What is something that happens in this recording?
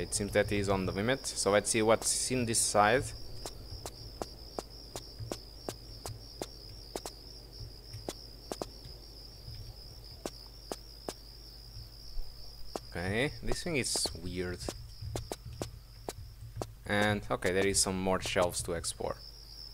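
Footsteps tap quickly and evenly on a hard stone floor.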